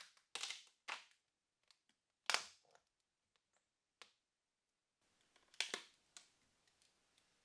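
Stiff plastic sheets clatter and scrape as they are lifted and set down.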